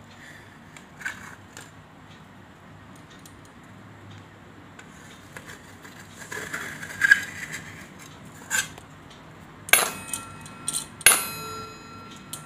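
A metal spoon scrapes and clinks against a steel bowl.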